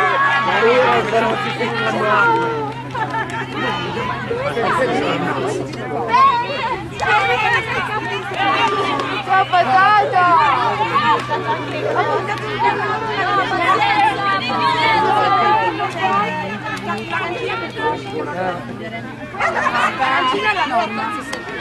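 Many young women chatter and cheer nearby outdoors.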